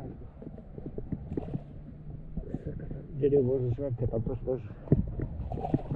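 Hands splash in shallow water.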